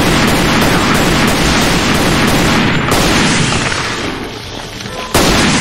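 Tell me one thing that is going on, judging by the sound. A pistol fires shot after shot, ringing out sharply.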